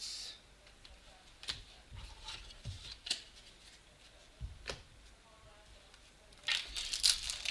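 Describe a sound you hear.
Trading cards tap and rustle as they are handled close by.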